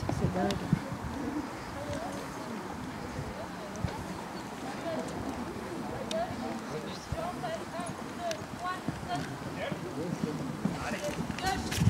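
Horses' hooves thud on soft sand at a canter.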